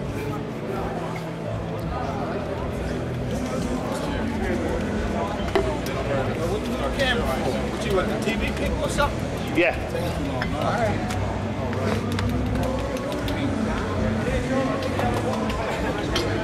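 A crowd of men chatter and murmur nearby.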